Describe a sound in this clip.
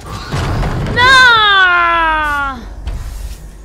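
A young woman screams loudly close to a microphone.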